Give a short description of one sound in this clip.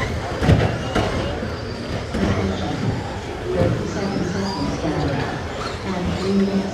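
Small electric racing cars whine as they speed around a track.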